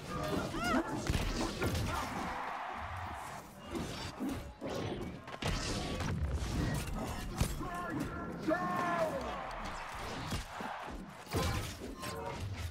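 Magic spells crackle and whoosh.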